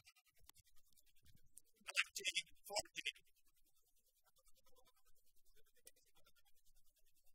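Rackets strike a shuttlecock with sharp pops.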